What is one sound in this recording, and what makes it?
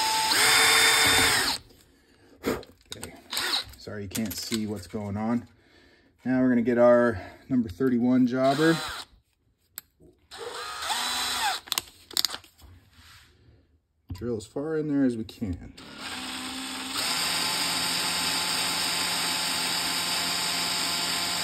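A cordless drill whirs steadily.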